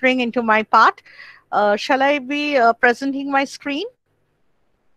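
A woman speaks with animation through a headset microphone on an online call.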